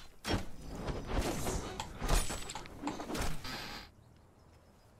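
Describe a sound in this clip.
A sword strikes a body with sharp thuds.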